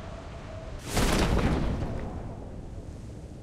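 A parachute snaps open with a sudden whoosh.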